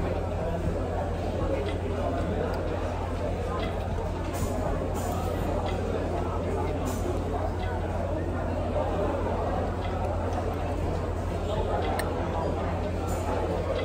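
A fork and spoon clink and scrape against a plate.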